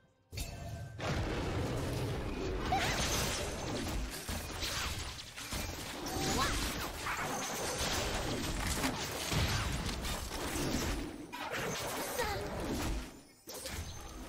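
Magic spells blast and crackle during a fight.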